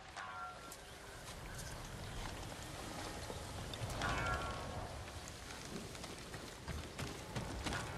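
A stringed lute is plucked in a slow tune.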